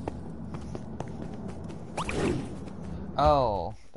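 A magic spell chimes and sparkles.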